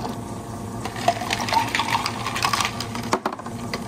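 Ice cubes clatter into a glass.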